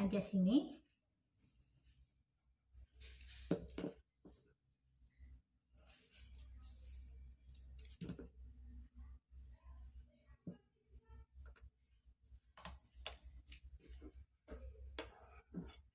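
A metal spoon scrapes and clinks against a bowl.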